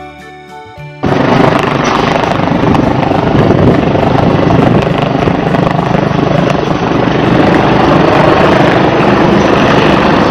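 A helicopter's rotor thuds loudly and fast close by.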